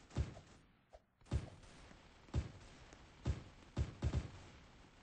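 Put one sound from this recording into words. Video game building pieces thud into place.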